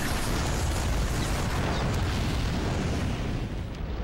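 Fire roars loudly.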